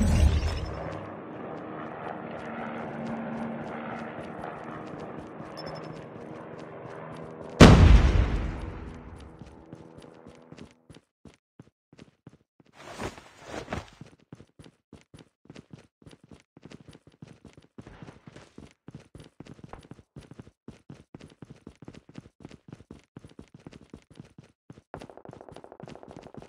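Quick footsteps patter over hard ground.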